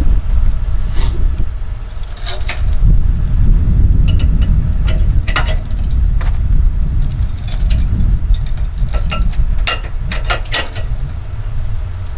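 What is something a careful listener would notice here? Metal safety chains clink and rattle against a trailer hitch.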